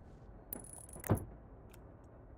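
A heavy metal part clunks into place.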